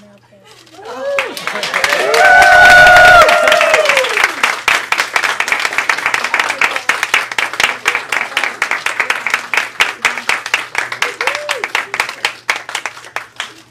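A crowd applauds with rapid clapping.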